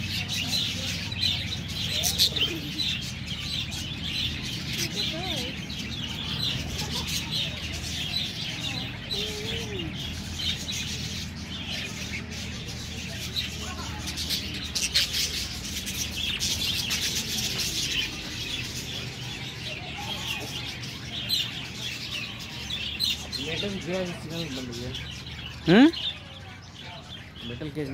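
A flock of budgerigars chirps and warbles.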